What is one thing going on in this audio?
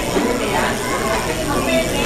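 A young girl speaks briefly into a microphone.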